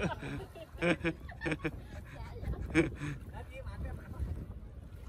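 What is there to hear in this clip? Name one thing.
Water laps and splashes gently around swimmers.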